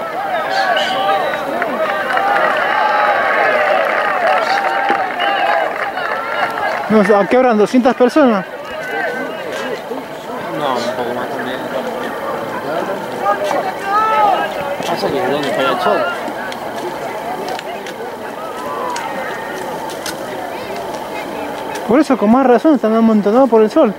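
A crowd of spectators chatters and calls out from the stands outdoors.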